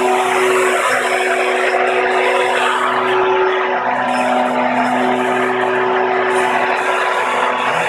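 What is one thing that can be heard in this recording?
Small electric motors whine and buzz steadily, close by.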